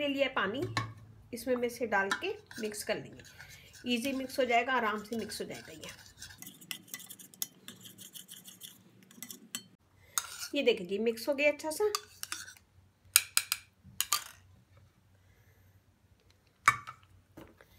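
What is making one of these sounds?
A metal spoon scrapes and clinks against a ceramic bowl.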